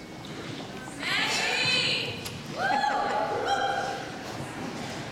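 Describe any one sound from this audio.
A young woman sings into a microphone through loudspeakers in a large hall.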